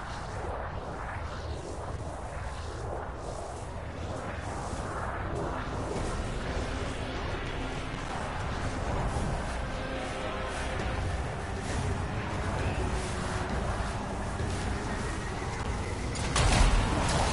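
A game's jet thrusters roar steadily.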